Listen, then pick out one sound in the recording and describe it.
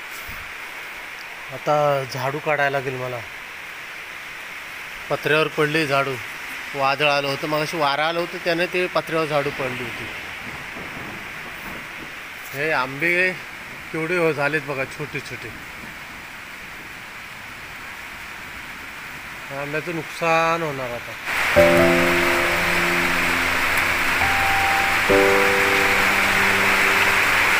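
Rain falls steadily outdoors, pattering on leaves and a metal roof.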